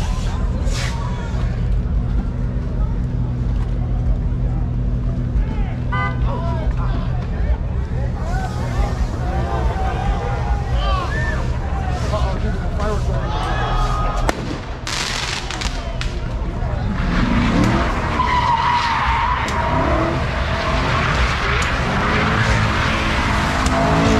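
A crowd of men and women talk and shout outdoors.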